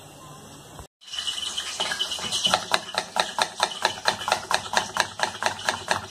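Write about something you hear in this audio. A knife chops an onion on a wooden board in quick, steady strokes.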